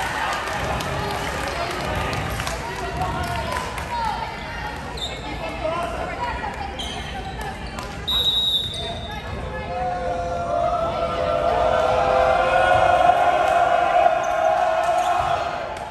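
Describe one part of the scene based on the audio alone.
Young women shout and call out in a large echoing gym.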